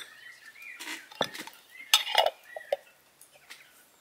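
A lid is screwed onto a glass jar.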